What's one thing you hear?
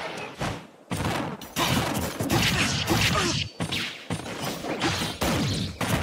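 Fighting game blows and impact effects land in quick bursts.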